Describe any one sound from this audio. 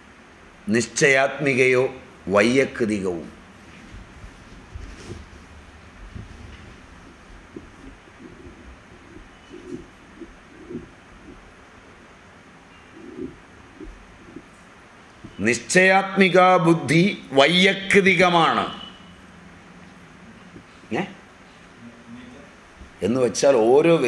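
An elderly man speaks calmly into a microphone, with long pauses.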